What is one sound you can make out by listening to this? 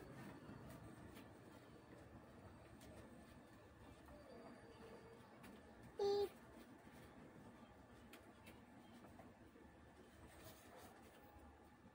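A tissue wipes across a circuit board.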